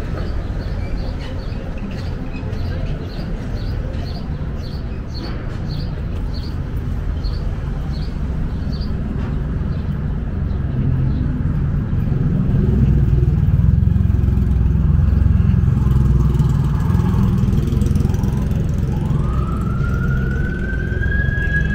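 City traffic rumbles steadily along the street outdoors.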